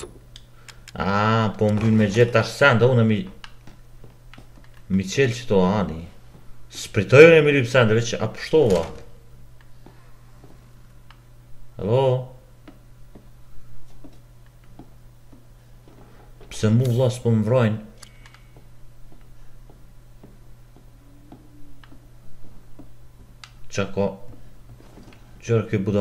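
A man talks calmly and close into a microphone, in short bursts.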